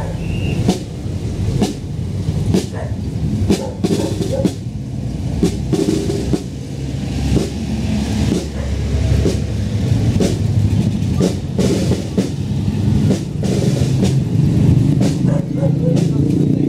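A brass band plays a march outdoors.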